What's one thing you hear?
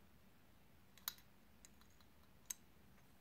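Metal parts clink together as they are handled close by.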